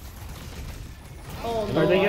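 A laser weapon fires with a buzzing zap.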